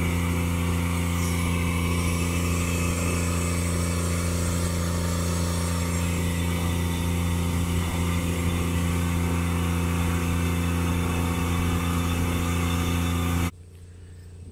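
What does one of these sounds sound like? A grain vacuum machine roars steadily with a deep hum.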